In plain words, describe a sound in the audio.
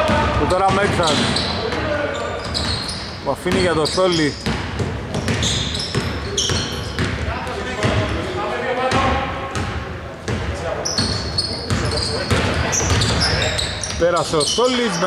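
Sneakers squeak sharply on a hardwood court in a large echoing hall.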